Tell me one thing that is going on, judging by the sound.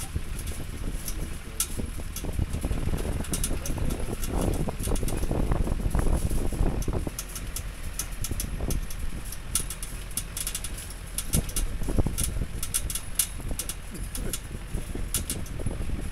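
A vehicle rumbles along a bumpy dirt road.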